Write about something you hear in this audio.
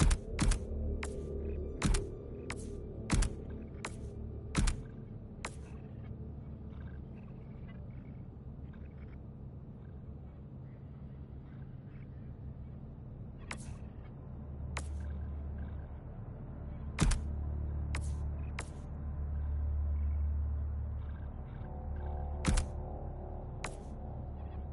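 Short, sharp menu clicks sound in quick bursts.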